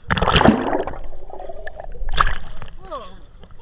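Water splashes loudly as a swimmer surfaces.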